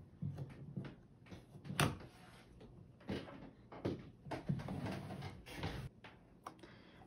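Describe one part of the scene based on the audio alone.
Hands tap and shift a small plastic board.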